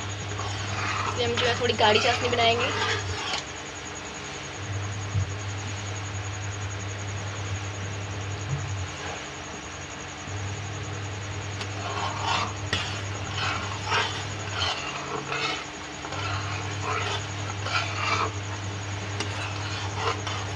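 Water bubbles and froths steadily at a boil in a pot.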